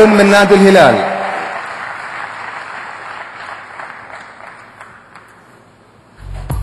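A large crowd applauds and the applause slowly fades.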